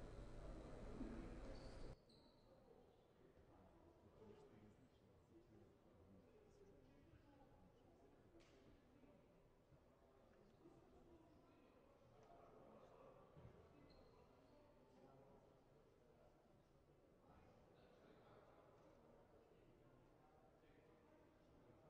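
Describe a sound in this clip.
Several men talk quietly in a large echoing hall.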